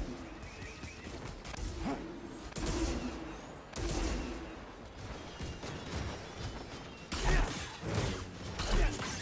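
Lightsabers hum and clash with sharp crackling hits.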